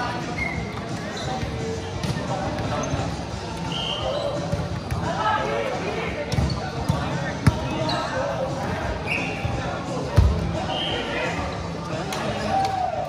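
Many players' voices call and chatter, echoing in a large hall.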